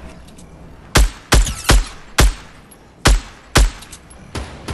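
Gunshots ring out in sharp, loud bursts.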